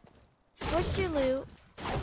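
A pickaxe chops into a tree with dull thuds.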